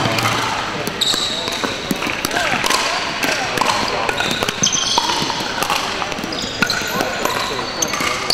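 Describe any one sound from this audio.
Shoes squeak on a wooden floor.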